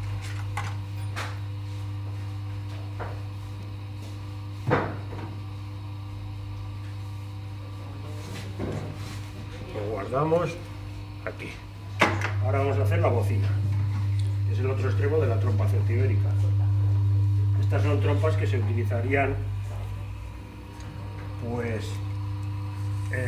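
A potter's wheel motor hums steadily.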